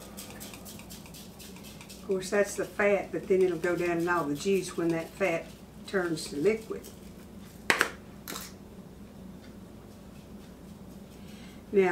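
Seasoning is shaken from a jar onto meat.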